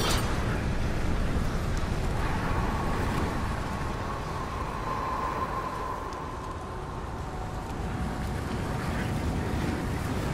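A large machine rumbles and clanks steadily.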